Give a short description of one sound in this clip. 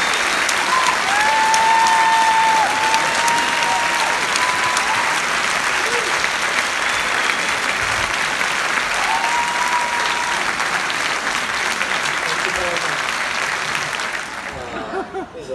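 A large audience claps and cheers loudly in an echoing hall.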